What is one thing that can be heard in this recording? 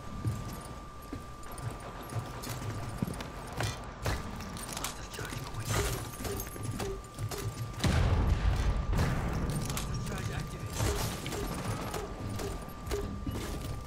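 Footsteps thud on a metal surface.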